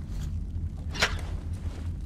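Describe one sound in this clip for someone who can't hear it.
A metal switch clicks sharply.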